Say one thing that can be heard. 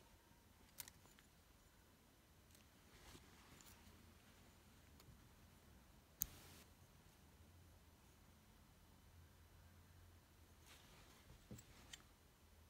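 A metal clasp clicks open and shut.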